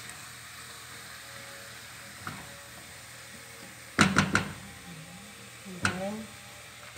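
A spatula scrapes and knocks against a pot while stirring food.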